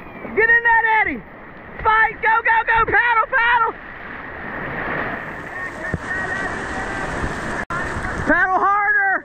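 Whitewater rushes and churns close by.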